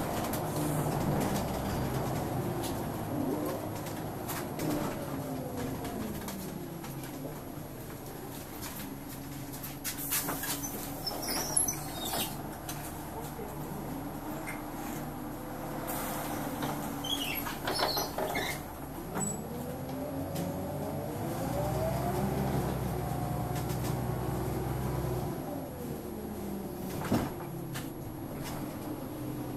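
A bus engine hums and whines as the bus drives along, speeding up and slowing down.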